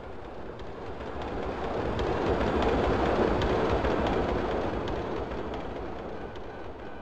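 A tram rumbles past and fades away.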